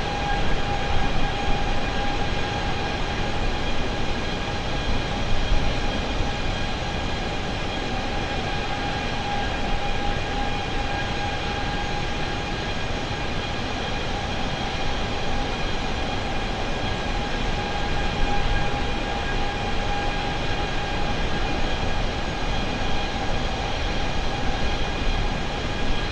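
Jet engines roar and whine steadily.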